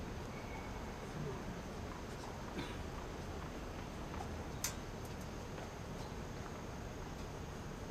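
A tennis ball bounces with sharp taps on a hard court nearby.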